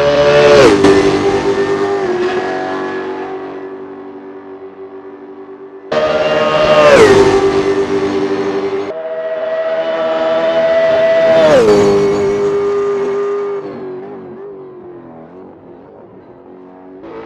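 A race car engine roars past and fades into the distance.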